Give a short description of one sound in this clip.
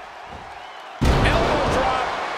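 A heavy body slams onto a wrestling mat with a loud thud.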